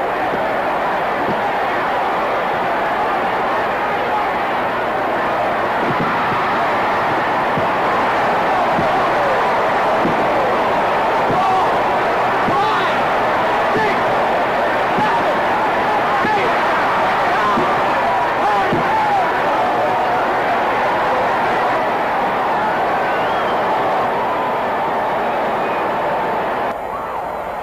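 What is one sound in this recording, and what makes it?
A large crowd cheers and roars in a large arena.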